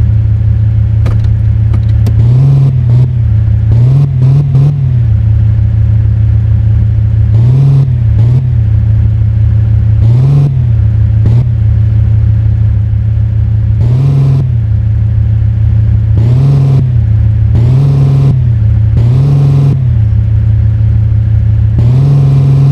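A car engine hums steadily and revs up briefly now and then.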